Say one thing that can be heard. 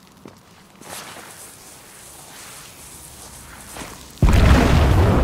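Footsteps tap quickly on a hard stone floor.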